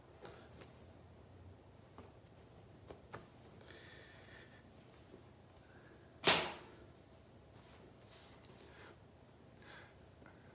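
Fabric rustles softly as a shirt is shaken and pulled.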